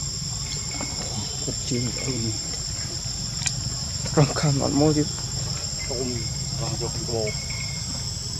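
A baby monkey squeaks and whimpers in short bursts.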